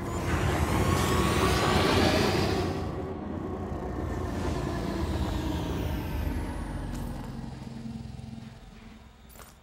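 A spacecraft engine rumbles and whooshes, then fades down.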